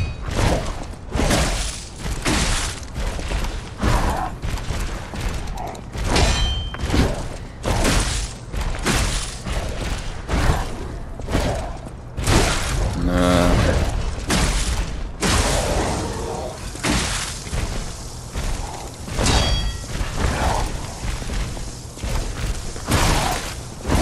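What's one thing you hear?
Blades clash and slash in rapid, heavy strikes.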